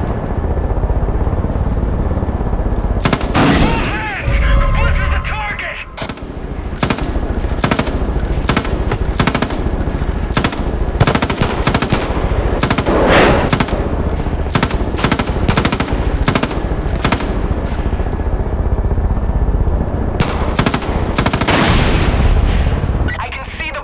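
A helicopter's engine and rotor drone steadily.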